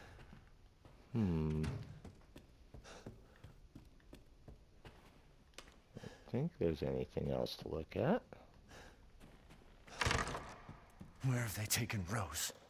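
Footsteps creak slowly across a wooden floor.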